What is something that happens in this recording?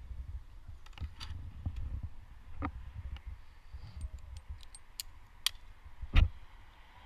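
Metal climbing gear clinks and clicks.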